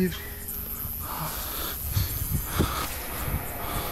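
Leaves of tall plants rustle and brush against someone.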